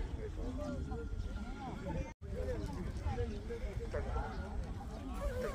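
A crowd of people chatters and calls out outdoors, a little way off.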